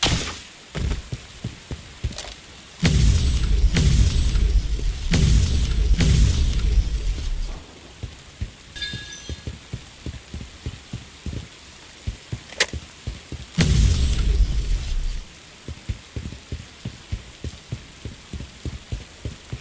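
Footsteps crunch steadily over rough ground.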